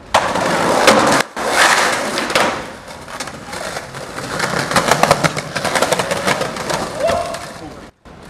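Skateboard wheels roll over pavement.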